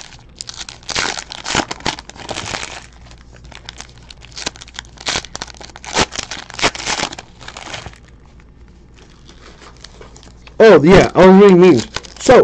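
A plastic wrapper crinkles and tears as a pack is ripped open.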